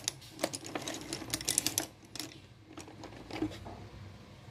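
Thin wooden sticks clatter and rattle as a hand rummages through them.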